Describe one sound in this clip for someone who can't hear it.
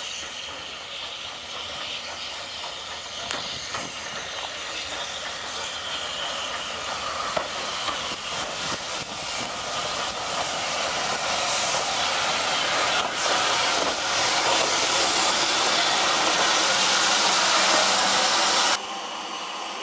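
A steam locomotive rolls slowly alongside, its wheels clanking and squealing on the rails.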